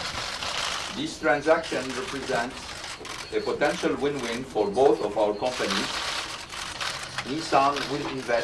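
A man speaks calmly into a microphone, heard through a loudspeaker in a large room.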